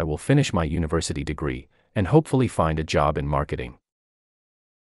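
A young man speaks calmly and clearly into a microphone, close by.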